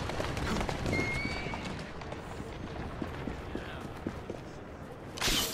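Footsteps run quickly on cobblestones.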